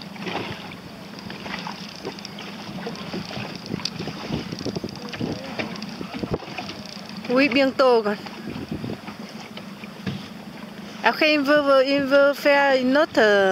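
Small waves lap and slosh softly in a breeze outdoors.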